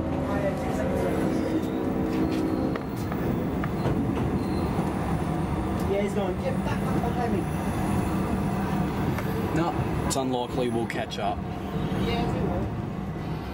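Another train rushes past close by.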